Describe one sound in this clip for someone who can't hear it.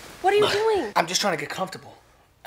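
A young man answers nearby in a puzzled tone.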